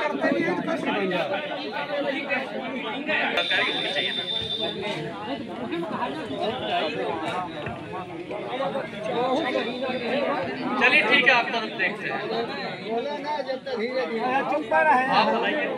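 A man speaks loudly and with animation through a microphone and loudspeaker, outdoors.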